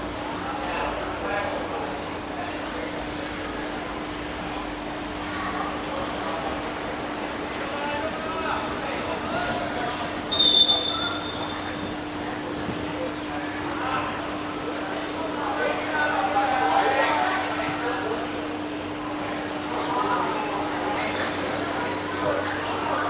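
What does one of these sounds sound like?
Young players shout to each other across an open pitch.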